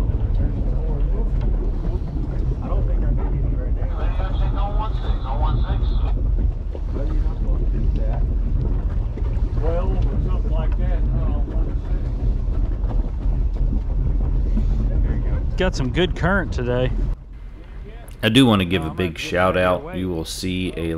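Waves lap against a boat hull.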